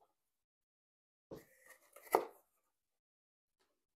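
A small box is set down on a table with a soft knock.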